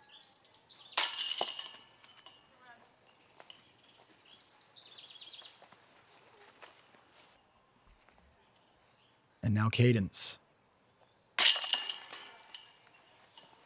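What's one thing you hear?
Metal chains rattle and jingle as a disc strikes a basket.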